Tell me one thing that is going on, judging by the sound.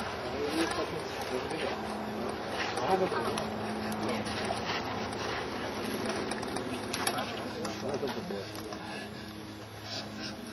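Several adults, men and women, talk at once nearby outdoors.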